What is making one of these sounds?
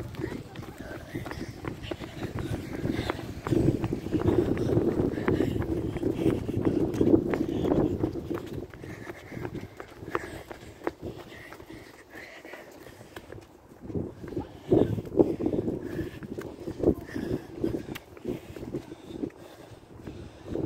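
Footsteps run on pavement outdoors.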